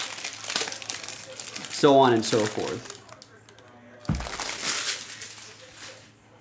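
Paper cards and wrappers rustle and crinkle as they are handled.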